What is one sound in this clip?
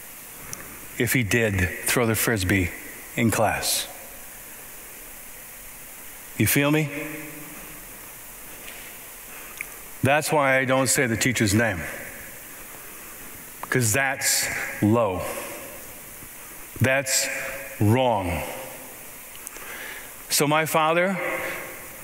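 A middle-aged man speaks calmly through a microphone, with pauses, in a reverberant hall.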